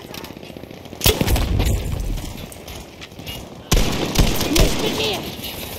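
A pump-action shotgun fires with sharp blasts.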